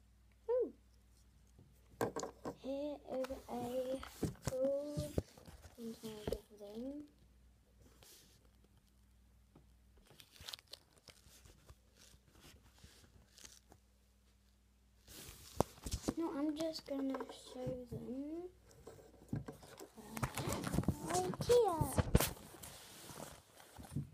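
A young girl talks close by with animation.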